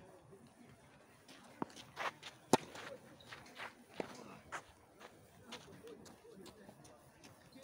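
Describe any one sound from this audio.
Tennis shoes scuff and slide on a clay court.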